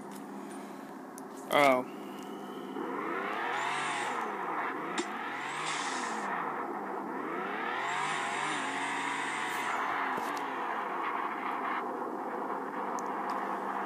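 Electronic engine noise from a game whirs and swells through a small speaker.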